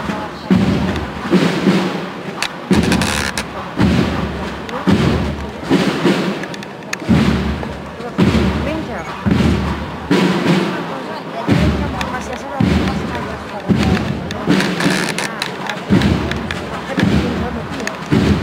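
Footsteps shuffle slowly over cobblestones as a procession passes.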